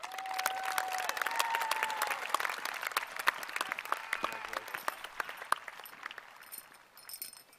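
A large crowd claps and cheers outdoors.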